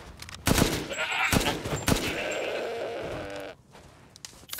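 Gunshots ring out loudly, with a ringing echo.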